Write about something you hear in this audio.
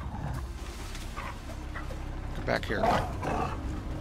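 A wolf snarls and growls close by.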